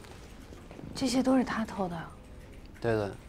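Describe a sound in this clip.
A young woman asks a short question quietly.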